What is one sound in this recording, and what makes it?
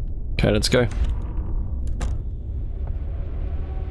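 A door handle clicks.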